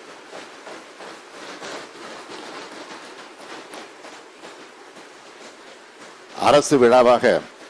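A man speaks firmly into a microphone.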